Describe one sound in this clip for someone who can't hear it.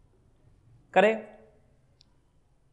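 A man speaks briefly and loudly, close by.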